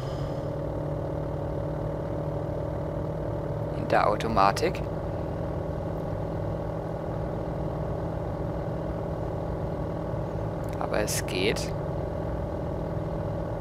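A car engine hums at a steady cruising speed.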